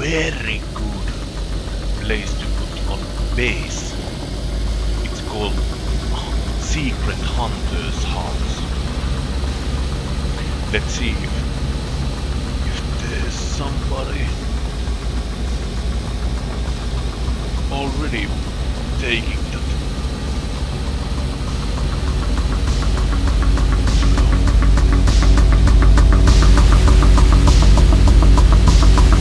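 A car engine hums steadily and grows louder toward the end.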